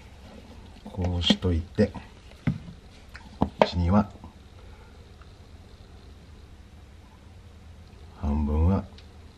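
A man speaks softly and close by.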